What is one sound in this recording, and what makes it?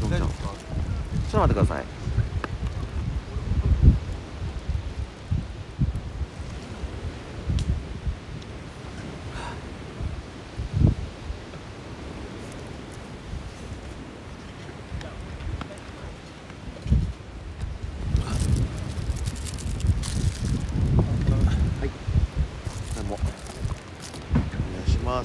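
A man talks close to the microphone outdoors.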